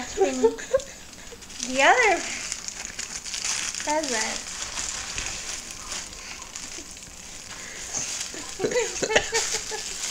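Paper packaging rustles and crackles as it is handled.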